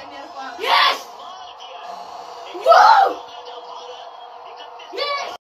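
A young boy shouts loudly in short bursts, close by.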